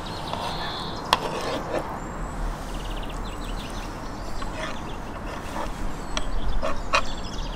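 A knife slices through roasted meat and taps on a wooden board.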